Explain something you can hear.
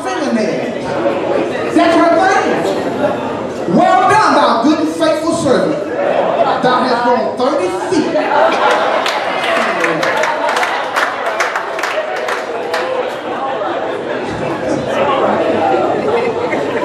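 A man speaks with animation through a microphone and loudspeakers in an echoing room.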